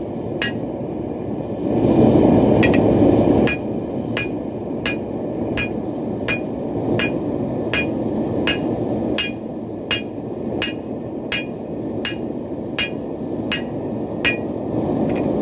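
A hammer strikes hot metal on an anvil with sharp, ringing clangs at a steady pace.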